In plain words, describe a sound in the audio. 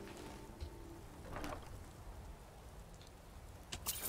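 A heavy wooden chest creaks open.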